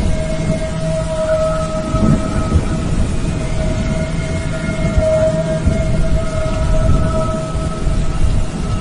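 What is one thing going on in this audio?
Wind gusts roar through the trees.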